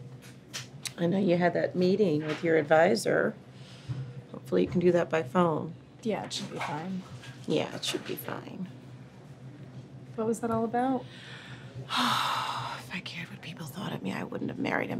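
A woman speaks quietly and emotionally close by.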